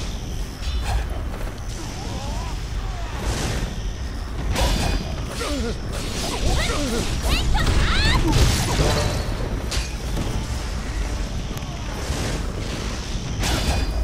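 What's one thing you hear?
Blades slash through the air with sharp whooshes and clangs.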